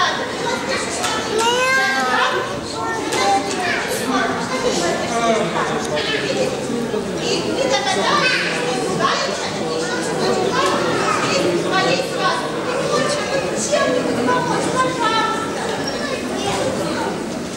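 Children speak lines on stage with animation, heard through a microphone in a large echoing hall.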